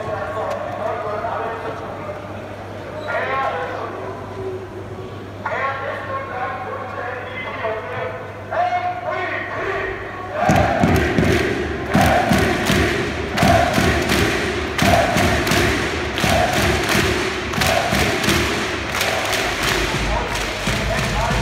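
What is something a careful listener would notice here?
A large crowd chants and sings loudly in an echoing arena.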